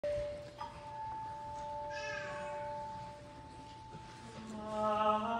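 An organ plays sustained notes.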